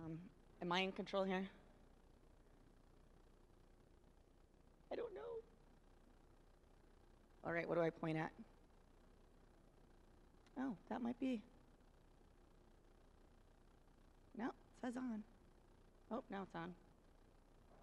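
A woman speaks into a microphone in short phrases with pauses.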